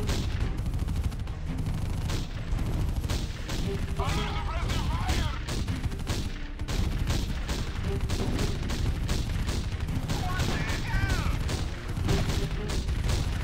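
Game cannons fire in repeated blasts.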